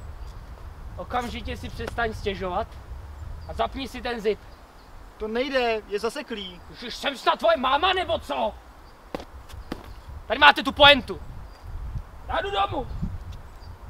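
A young man speaks calmly and quietly nearby.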